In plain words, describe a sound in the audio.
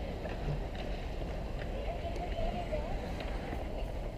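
Ice hockey skates scrape and carve across an outdoor rink.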